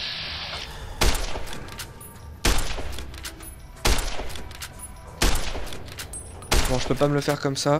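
A rifle fires loud, sharp shots one after another.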